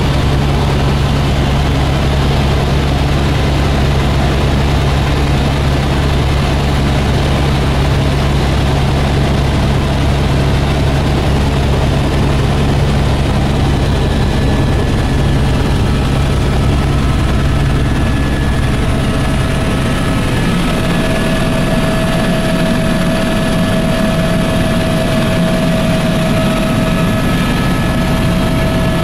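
A helicopter's engine and rotor roar steadily throughout, heard from inside the cabin.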